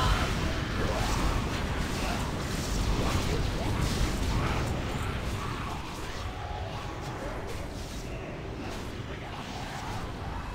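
Magic spells crackle and whoosh in a video game battle.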